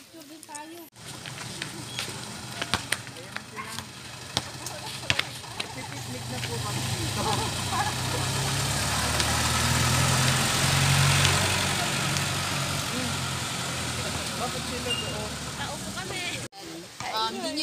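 A jeepney engine rumbles as it pulls in and idles.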